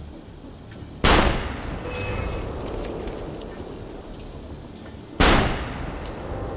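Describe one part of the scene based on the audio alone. A pistol fires two loud shots that ring out and fade.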